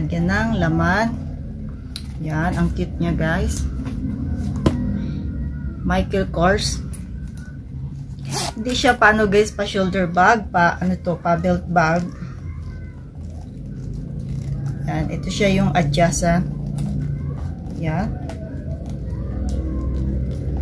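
A handbag's material rustles as it is handled.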